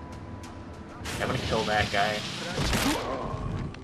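An owl swoops down with a loud rushing whoosh of air.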